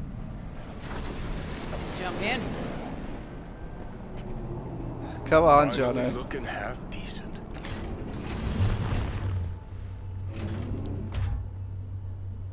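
A middle-aged man talks casually into a microphone.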